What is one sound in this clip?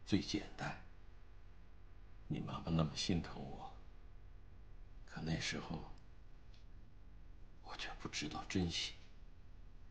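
A middle-aged man speaks quietly and seriously nearby.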